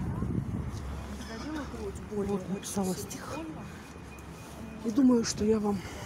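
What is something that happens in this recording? A woman talks nearby on a phone.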